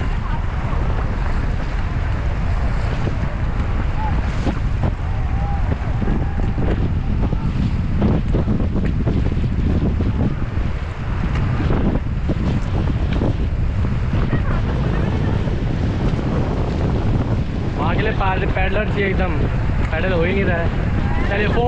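Paddles splash in the water.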